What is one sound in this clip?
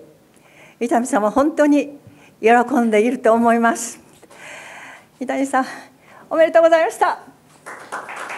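An elderly woman speaks warmly into a microphone.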